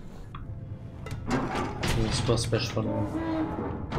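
A heavy metal door's wheel creaks as it turns.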